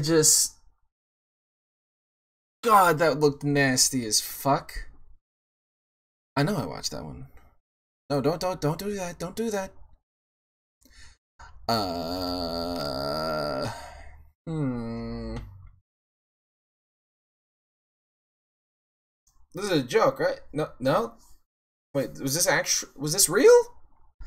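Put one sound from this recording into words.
A young man talks casually into a close microphone, in bursts with pauses.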